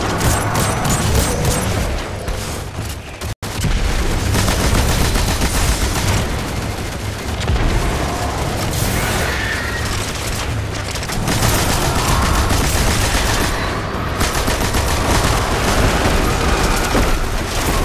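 Guns fire in rapid, crackling bursts.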